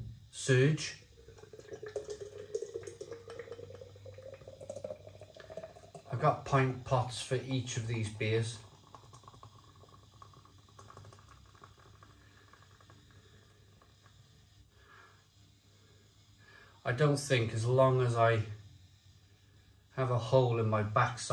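Beer glugs and fizzes as it pours into a glass.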